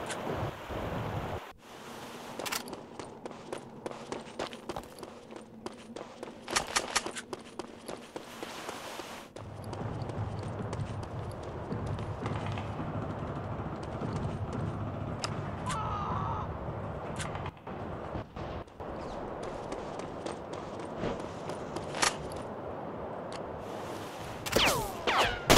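Boots thud quickly on hard ground as a soldier runs.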